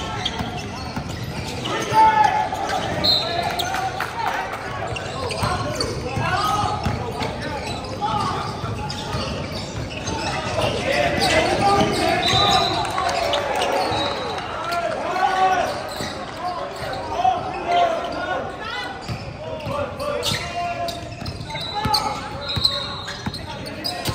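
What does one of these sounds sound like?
A basketball bounces on a wooden floor with dull thuds.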